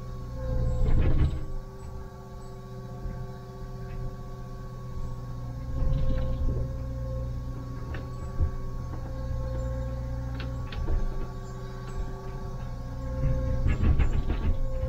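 Rocks and soil clatter against an excavator bucket.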